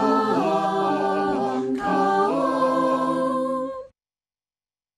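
A choir sings a slow hymn through an online call.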